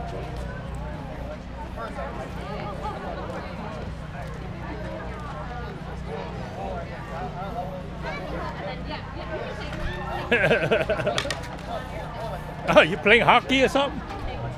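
Several adults chat quietly in the background outdoors.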